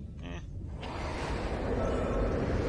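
A large heavy door hisses open.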